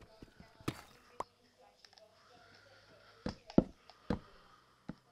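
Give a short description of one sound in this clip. A pickaxe knocks against stone in sharp, quick taps.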